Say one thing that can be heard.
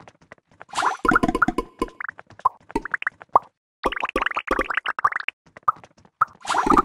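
Bright game sound effects pop and chime rapidly as balls merge.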